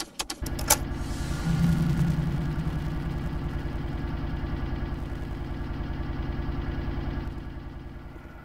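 An electrical device hums with a low, steady buzz.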